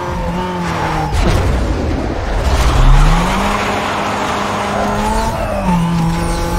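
Tyres screech as a car skids through a turn.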